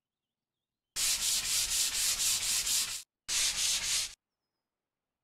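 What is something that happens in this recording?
A spray can hisses in quick pulses.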